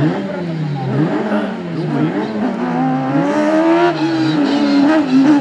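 A single-seat racing prototype's engine revs hard, rising and falling through gear changes.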